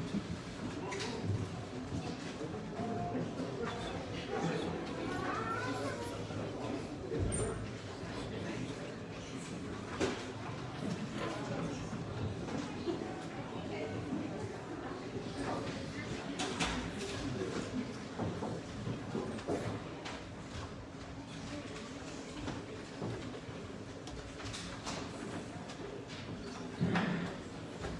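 A congregation murmurs and chatters in a large echoing hall.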